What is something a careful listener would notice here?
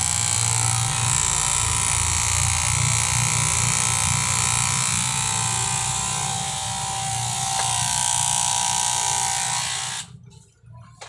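Electric hair clippers buzz close by.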